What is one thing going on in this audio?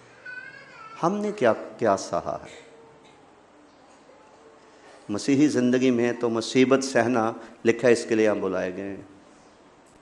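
An elderly man speaks with emphasis into a microphone, in short bursts with pauses.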